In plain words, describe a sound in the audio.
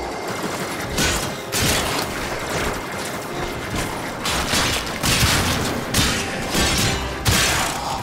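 A blade swings with sharp whooshing swipes.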